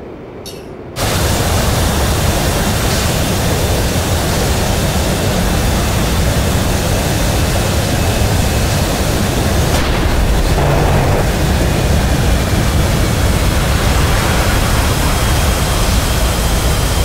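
A jet engine roars loudly and steadily close by.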